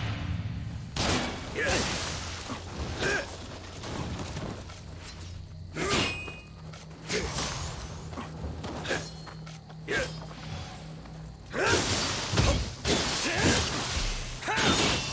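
Swords slash and clang in a fight, with sharp hits coming in bursts.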